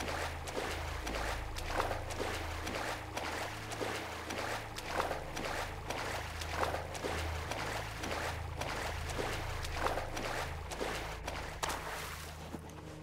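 A swimmer splashes through water with front crawl strokes.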